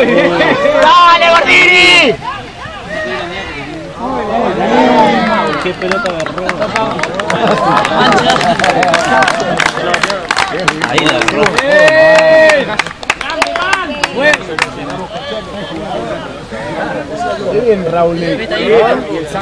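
A crowd of spectators cheers and shouts outdoors.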